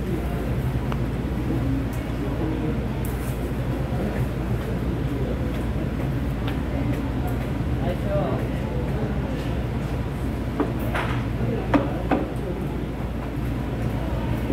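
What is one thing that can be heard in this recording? A steady low hum of fans fills the room.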